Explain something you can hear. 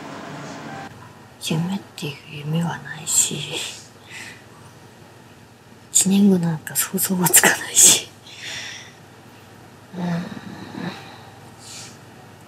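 A young woman speaks quietly and calmly, close by.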